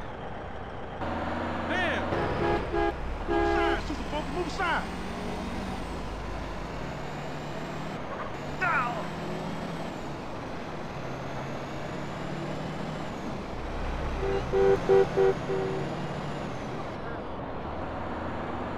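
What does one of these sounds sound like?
A bus engine rumbles as the bus drives along a road.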